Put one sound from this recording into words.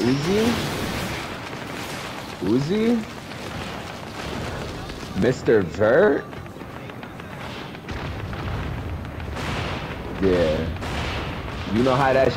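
Energy blasts whoosh and crackle in quick bursts.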